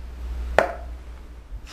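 A chess piece knocks down onto a board.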